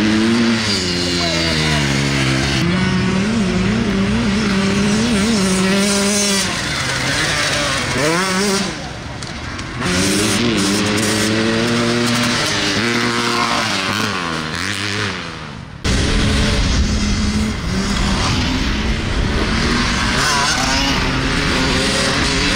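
Dirt bike engines rev loudly and roar past.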